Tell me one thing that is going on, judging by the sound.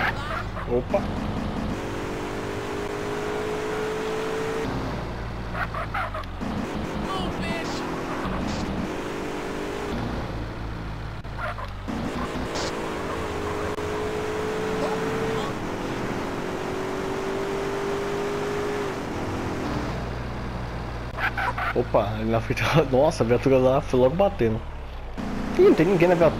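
A car engine revs up and down, rising in pitch and dropping between gears.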